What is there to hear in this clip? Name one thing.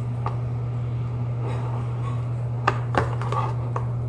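A spoon clinks and scrapes in a plastic bowl.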